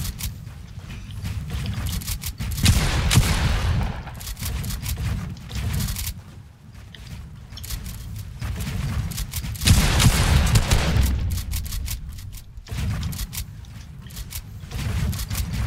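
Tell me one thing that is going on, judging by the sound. Wooden building pieces snap into place with quick, repeated clacks.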